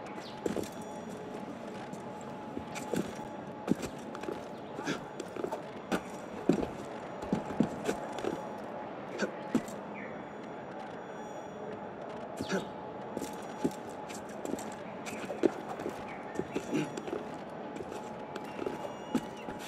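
A climber's hands and feet thump and scrape on stone and roof tiles.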